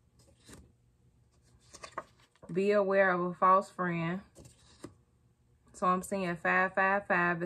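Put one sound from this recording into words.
Paper cards rustle and tap as they are handled.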